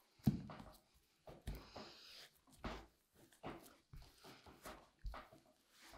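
A knife scrapes across a crusty surface.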